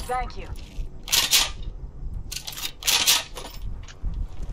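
A gun clicks and rattles as it is picked up.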